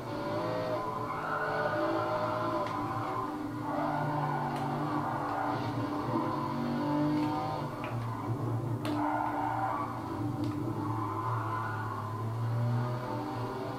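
Tyres screech on a racetrack through a television's speakers.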